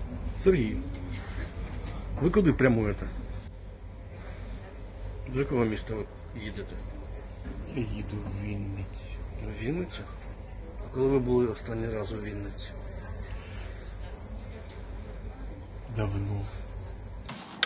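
A middle-aged man talks close by in a low, muttering voice.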